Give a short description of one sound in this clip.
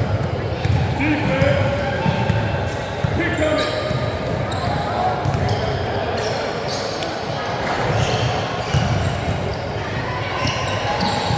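Young girls call out to each other on the court.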